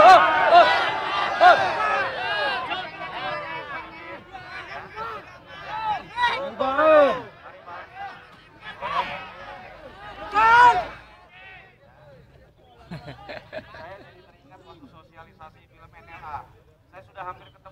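A man speaks loudly to a crowd.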